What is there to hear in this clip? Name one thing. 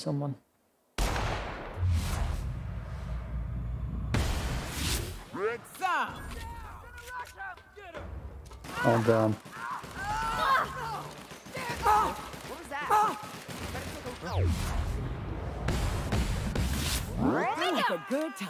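Gunshots rattle in quick bursts.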